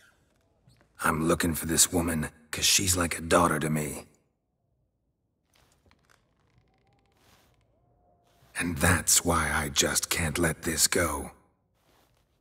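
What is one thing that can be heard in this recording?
A man with a deep, gravelly voice speaks calmly and firmly.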